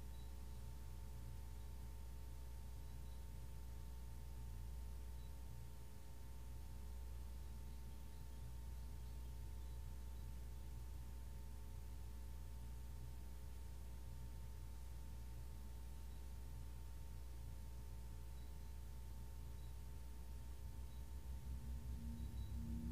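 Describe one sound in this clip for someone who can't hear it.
Singing bowls ring with steady, sustained tones.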